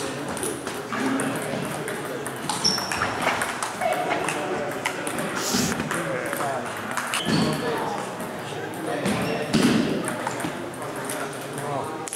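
A ping-pong ball clicks sharply on paddles and a table in a large echoing hall.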